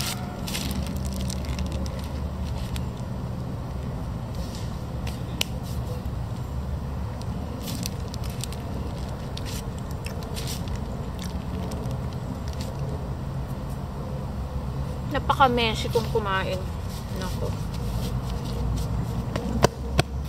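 A young woman chews fruit with soft, wet crunching.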